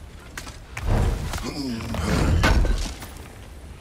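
A heavy wooden chest lid creaks and thuds open.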